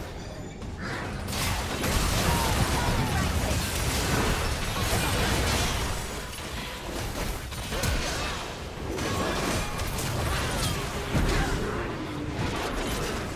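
Game characters strike with sharp hits and impacts.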